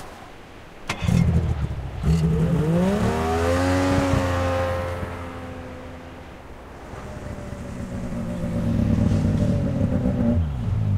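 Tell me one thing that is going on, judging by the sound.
A snowmobile engine roars close by, rising in pitch as it passes and then dropping away.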